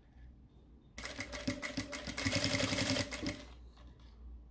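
A sewing machine runs and stitches briefly.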